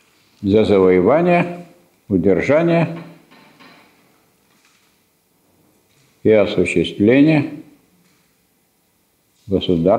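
A middle-aged man lectures calmly in a room with a slight echo, in short phrases with pauses.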